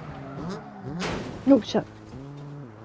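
A car thuds and scrapes as it bumps over a kerb.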